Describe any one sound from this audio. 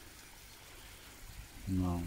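A fish splashes softly at the surface of a pond.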